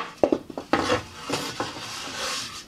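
Wooden boards knock and tap against each other.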